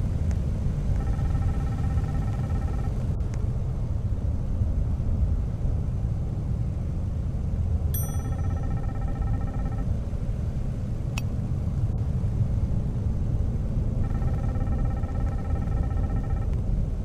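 A steady electronic tone plays in short bursts.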